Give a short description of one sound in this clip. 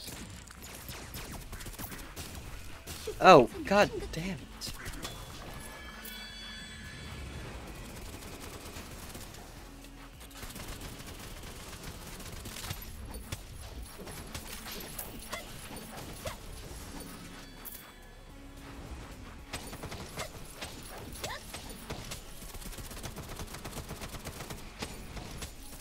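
Video game gunfire pops and crackles in quick bursts.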